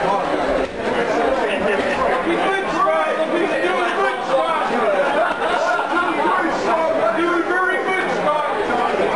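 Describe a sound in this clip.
A crowd of spectators shouts and cheers loudly.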